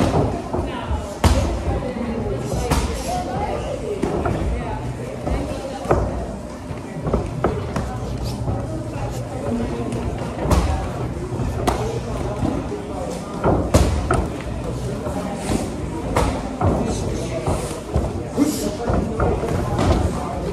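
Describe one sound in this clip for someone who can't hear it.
Kicks and punches thud sharply against pads and bodies.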